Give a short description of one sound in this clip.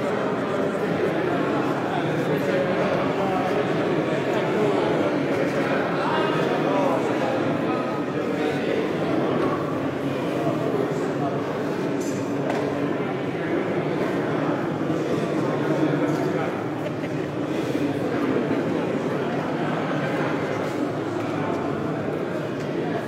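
A crowd of men and women chatters loudly all around in a large echoing hall.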